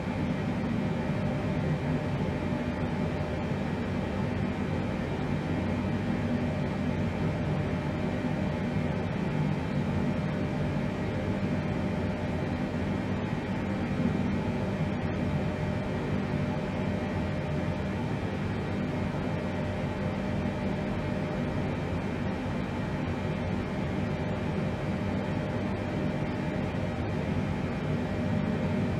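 Aircraft engines drone steadily.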